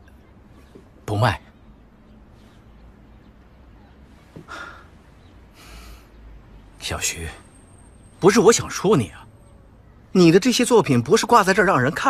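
A middle-aged man speaks in a low, firm voice close by.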